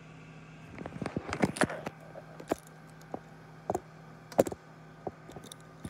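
A small object clicks and knocks against a hard countertop.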